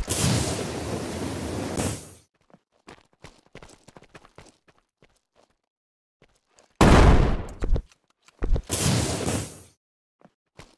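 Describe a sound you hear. Wooden walls thud and clatter into place in loud bursts.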